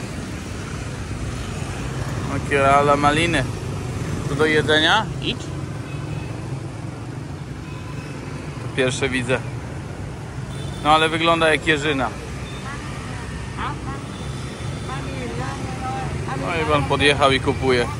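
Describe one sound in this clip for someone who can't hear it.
Motor scooters hum and pass by on a street.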